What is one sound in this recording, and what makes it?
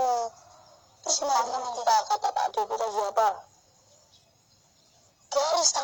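A young boy answers in surprise, close by.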